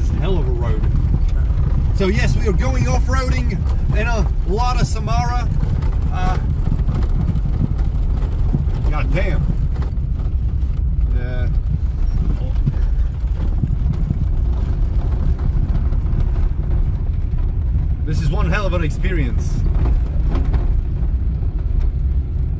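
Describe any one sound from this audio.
A car engine rumbles steadily inside the car.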